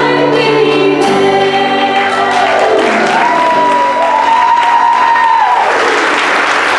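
Two young women sing together through microphones in an echoing hall.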